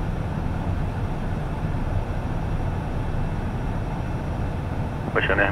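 A steady low engine roar fills an aircraft cockpit.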